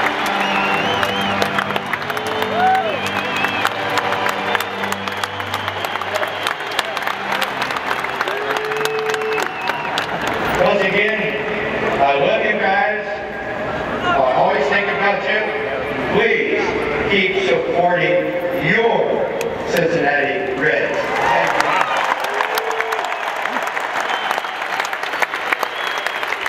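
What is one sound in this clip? A large crowd cheers and claps in an open stadium.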